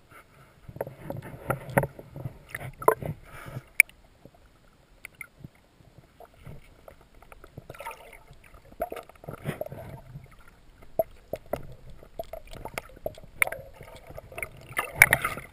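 Water sloshes and bubbles underwater with muffled thuds.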